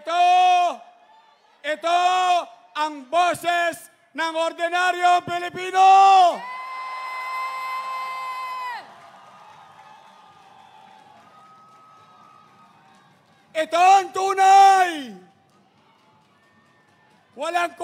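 A man shouts energetically into a microphone over loudspeakers.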